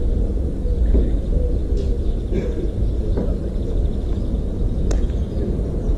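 A tennis ball is struck back and forth with sharp pops of rackets, outdoors.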